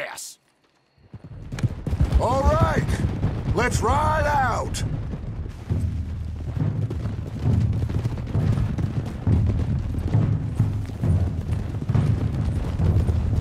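Horses gallop over the ground with heavy, rumbling hoofbeats.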